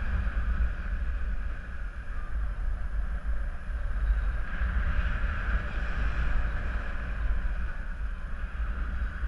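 Wind rushes and buffets loudly against a microphone.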